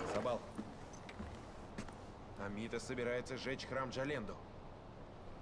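A young man speaks calmly and close by.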